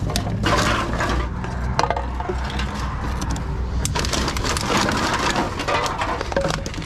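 Empty cans and plastic bottles clatter and crinkle.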